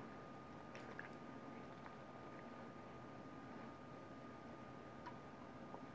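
A woman drinks from a can with gulping sounds.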